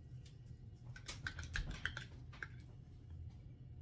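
A plastic jar rattles and clicks as it is handled.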